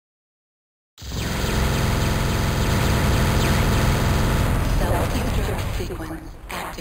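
A spacecraft engine drones loudly.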